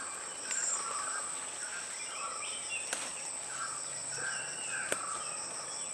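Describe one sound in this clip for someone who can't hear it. Plant leaves rustle as a person picks berries.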